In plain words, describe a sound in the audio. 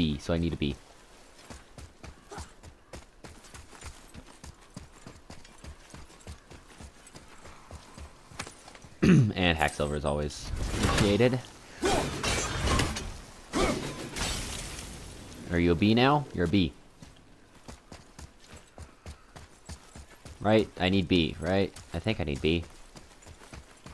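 Footsteps crunch quickly over grass and dirt.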